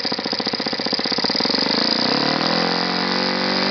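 A small model engine revs up to a higher, smoother whine.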